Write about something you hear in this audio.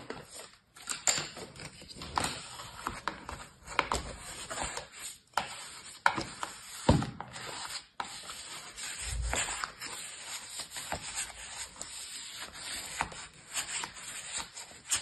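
A plastic scraper scrapes and crunches through damp sand, close by.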